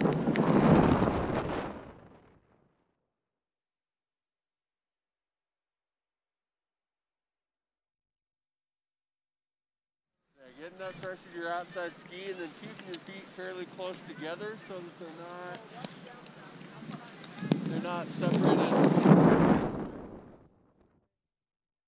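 Strong wind roars and buffets the microphone outdoors.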